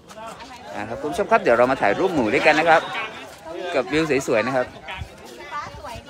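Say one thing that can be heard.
Several men and women chatter and laugh in a lively group.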